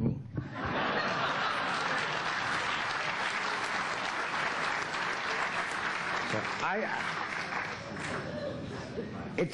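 An audience laughs in a large room.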